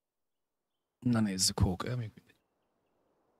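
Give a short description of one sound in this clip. A man speaks briefly and with animation into a close microphone.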